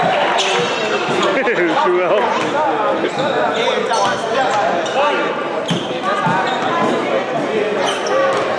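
Young men and spectators chatter and call out in a large echoing hall.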